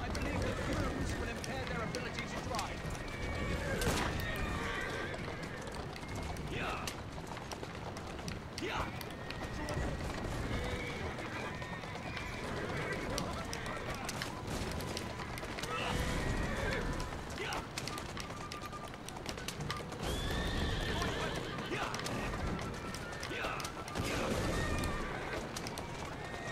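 Horses' hooves clatter steadily on the road.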